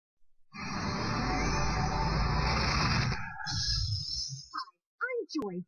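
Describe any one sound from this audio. A bright magical whoosh swells and shimmers, then fades.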